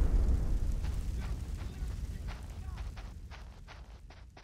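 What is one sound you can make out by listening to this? Footsteps patter quickly.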